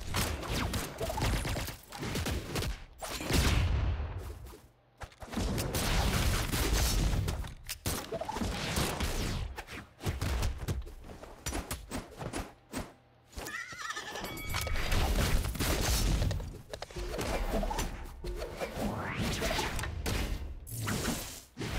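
Fighters in a video game trade rapid punches and blows with sharp thumps and whooshes.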